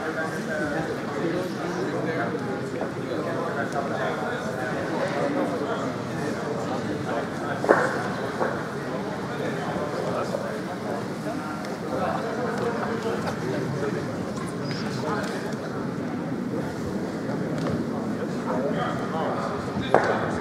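Many voices murmur and call out around a large echoing hall.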